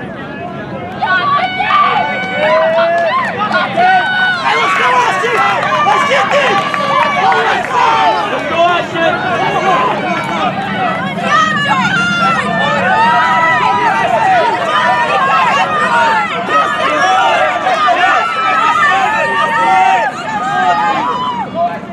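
A crowd of people cheers and shouts loudly nearby.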